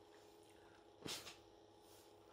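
A woman blows out a candle with a short puff.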